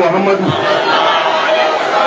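A man speaks loudly into a microphone through a loudspeaker.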